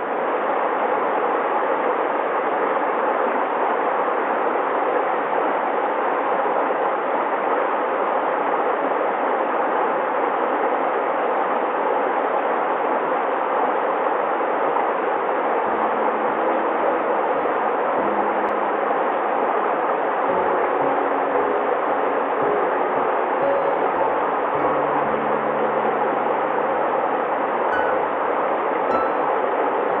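A shallow stream rushes and gurgles steadily over stones outdoors.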